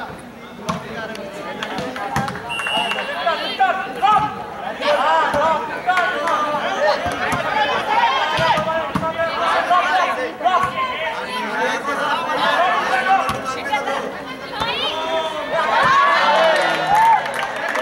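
A volleyball is hit with dull slaps.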